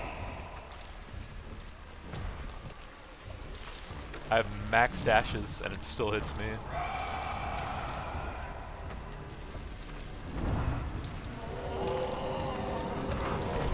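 Thunder cracks as lightning strikes.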